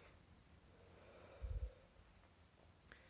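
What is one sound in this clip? A man exhales a long breath.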